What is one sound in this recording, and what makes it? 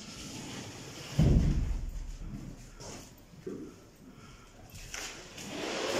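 Men shuffle and drag a heavy rolled carpet across a floor.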